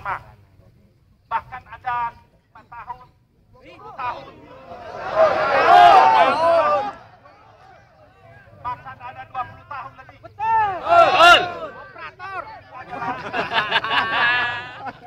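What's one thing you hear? A man speaks forcefully through a loudspeaker outdoors.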